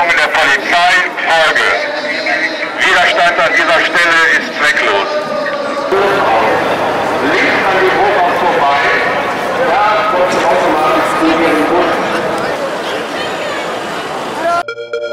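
A crowd of men talks and shouts loudly outdoors.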